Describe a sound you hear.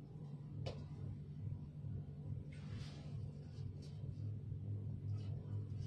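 Clothes hangers scrape along a rail.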